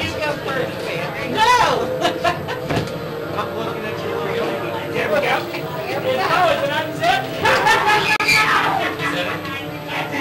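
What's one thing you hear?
A woman shrieks with laughter.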